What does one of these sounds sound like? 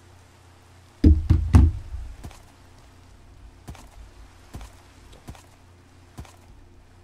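Hooves thump on the ground as a ridden animal walks.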